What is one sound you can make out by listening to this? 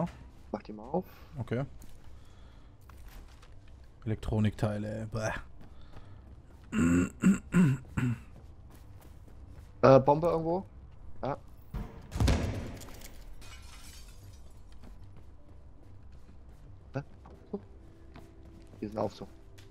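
Footsteps crunch over scattered debris on a hard floor.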